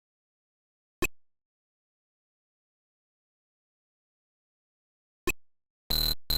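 A short electronic click sounds twice.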